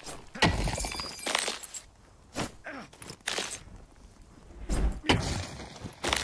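A pickaxe strikes rock with sharp, ringing knocks.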